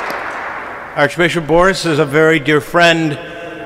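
A man chants in a deep voice through a microphone.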